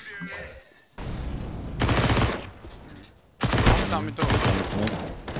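A rifle fires bursts of loud, sharp gunshots.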